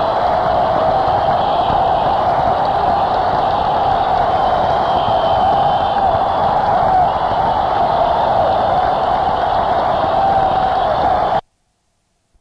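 A drum kit pounds loudly in a rock performance.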